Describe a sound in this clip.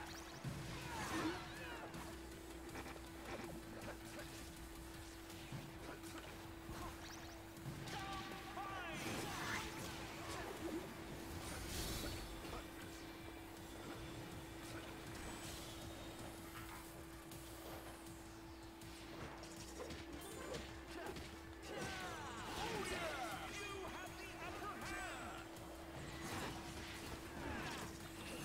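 Cartoonish game sound effects whoosh, zap and burst.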